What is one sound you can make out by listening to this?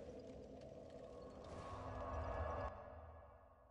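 A magical whoosh swells and then cuts off.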